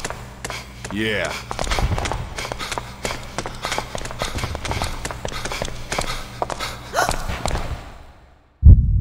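Footsteps clatter down stairs.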